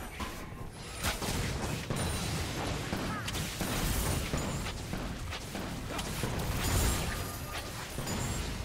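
Sharp game hit sounds strike again and again.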